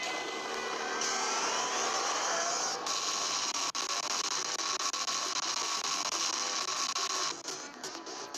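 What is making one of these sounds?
An energy beam roars and crackles steadily.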